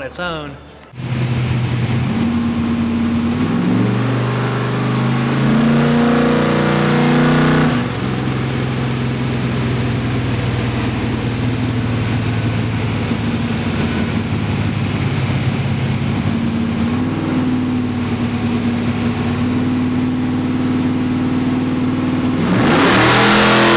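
A race car engine idles loudly with a deep rumble and revs up and down.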